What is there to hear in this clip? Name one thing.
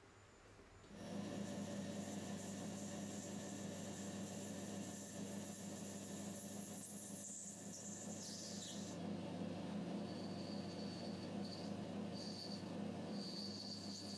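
A cutting tool scrapes and whines against spinning metal.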